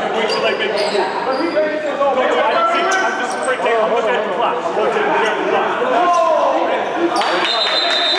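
A crowd of people talks and calls out in a large echoing gym.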